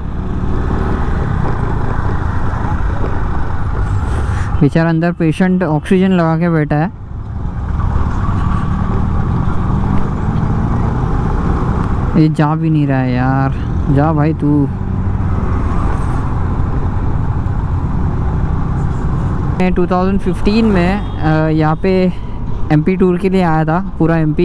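A motorcycle engine rumbles steadily while riding.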